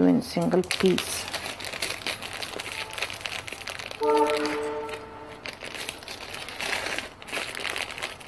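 Small metal pieces clink together inside a bag.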